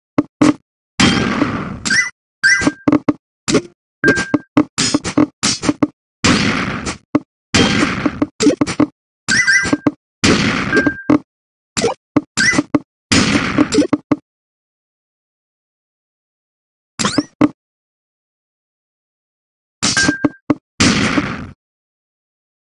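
Game sound effects burst as rows of blocks clear.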